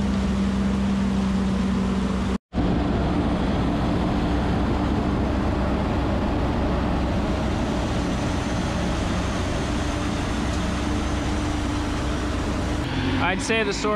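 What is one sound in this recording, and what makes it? A machine engine roars steadily up close.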